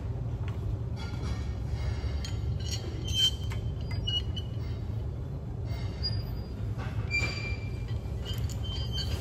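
Metal weight plates clink and clank.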